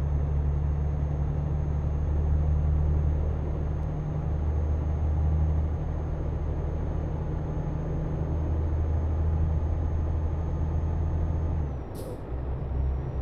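A truck engine drones low and steady while driving.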